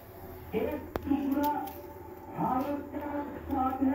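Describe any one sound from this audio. A knife slices through an onion.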